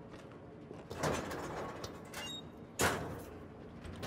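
A heavy metal door bangs and rattles.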